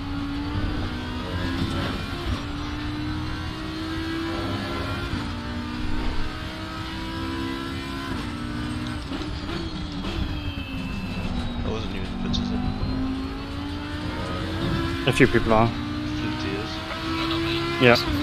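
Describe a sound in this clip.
A racing car engine roars and revs, shifting up and down through the gears.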